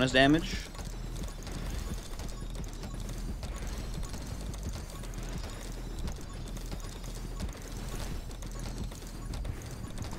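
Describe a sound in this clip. Rapid electronic gunfire rattles on without a break.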